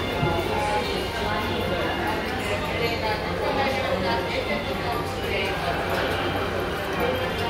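A busy crowd murmurs in a large echoing hall.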